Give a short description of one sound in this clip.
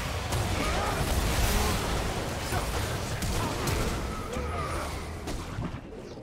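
Magic spells whoosh and crackle in a fast clash.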